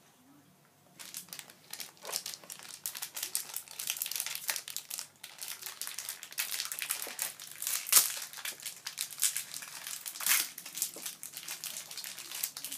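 Foil packets crinkle and rustle.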